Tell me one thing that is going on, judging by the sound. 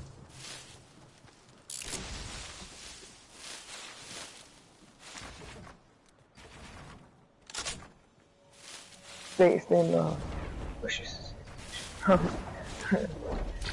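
Footsteps rustle through tall, dense plants.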